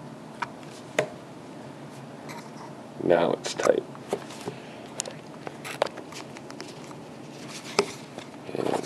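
A plastic battery pack clicks and knocks as it is handled.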